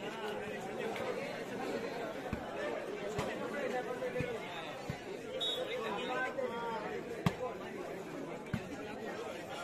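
A large outdoor crowd of men chatters loudly.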